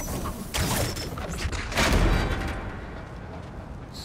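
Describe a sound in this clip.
A heavy metal gate grinds and creaks open.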